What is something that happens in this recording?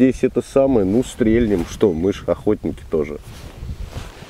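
A man talks with animation, close by, outdoors.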